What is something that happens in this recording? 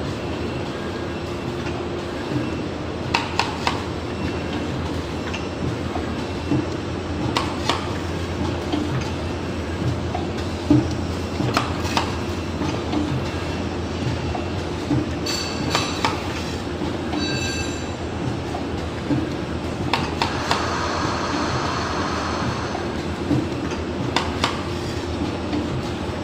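A printing machine hums steadily as it runs.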